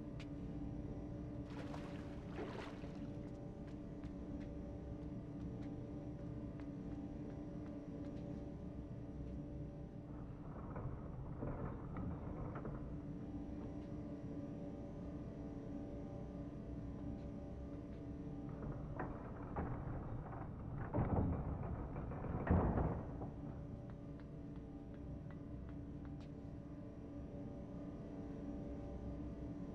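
A low mechanical hum drones steadily.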